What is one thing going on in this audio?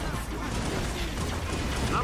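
Vehicles fire energy weapons in short bursts.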